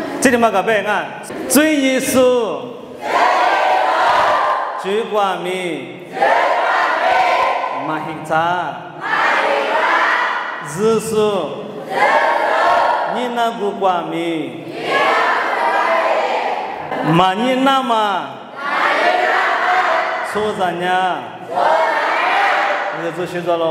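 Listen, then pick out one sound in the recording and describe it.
A young man talks with animation into a microphone, heard over loudspeakers in an echoing hall.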